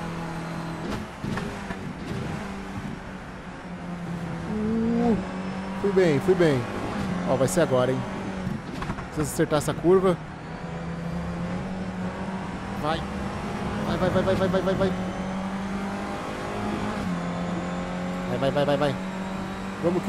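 A racing car engine drones steadily and revs up and down through gear changes.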